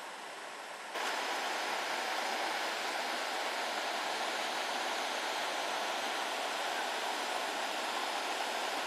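Water trickles and rushes in a small stream.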